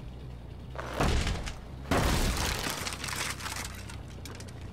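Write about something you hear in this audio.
Sparks burst from a machine with a loud crackling blast.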